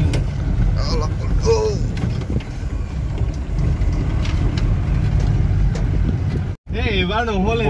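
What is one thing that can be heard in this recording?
A vehicle engine rumbles steadily while driving over a rough track.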